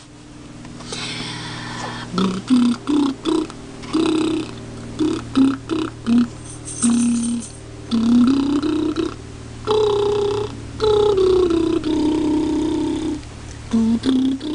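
A young woman coos and talks playfully close by.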